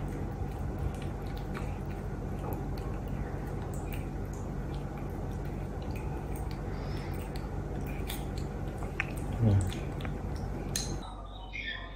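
A spoon clinks softly against a small bowl.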